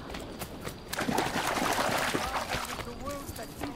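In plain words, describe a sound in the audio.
Water splashes loudly under running feet.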